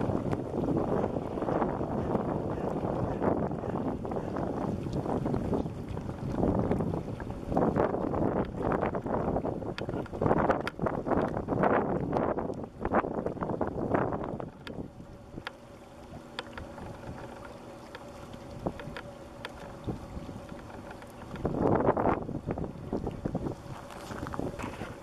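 Water laps gently against the shore.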